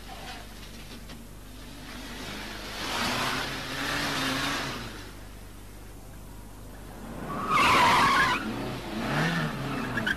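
A small van's engine hums as the van drives off.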